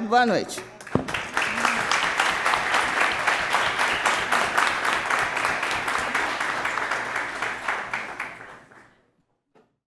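An audience claps steadily in a large hall.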